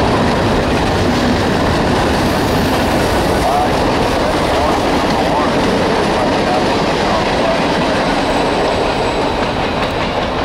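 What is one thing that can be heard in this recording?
A long freight train rumbles and clatters steadily along the tracks nearby.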